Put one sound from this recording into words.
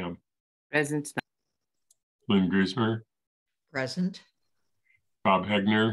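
An elderly man speaks calmly in short phrases over an online call.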